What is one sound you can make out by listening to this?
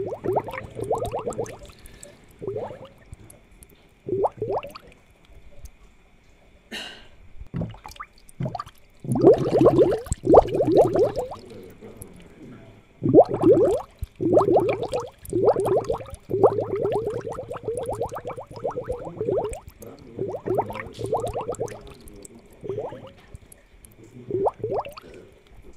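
Water bubbles softly from an air pump.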